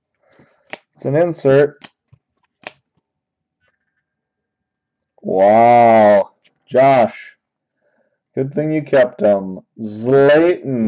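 Trading cards slide and rustle softly between fingers.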